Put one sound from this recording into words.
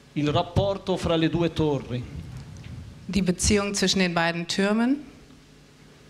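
An elderly man speaks into a microphone over loudspeakers in a large hall.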